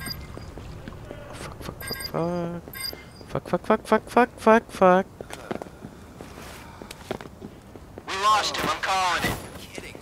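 Footsteps run quickly across wooden boards.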